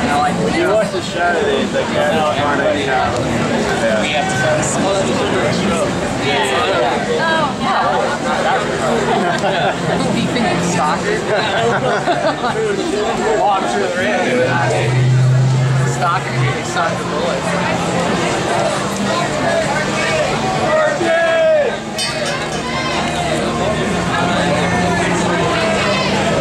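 A crowd of men and women chatters close by outdoors.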